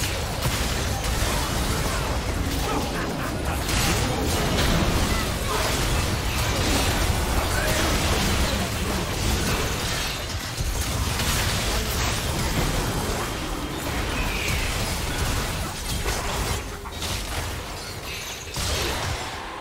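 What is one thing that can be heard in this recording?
Magic blasts and explosions crackle and boom in a fast battle.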